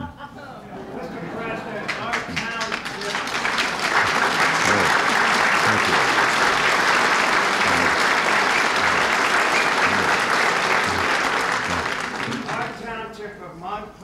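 An audience laughs and applauds loudly, then fades.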